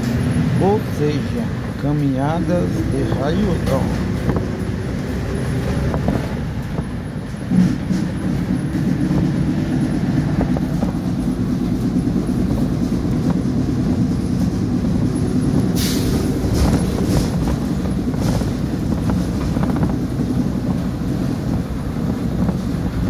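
A vehicle's engine hums and its tyres rumble steadily on the road.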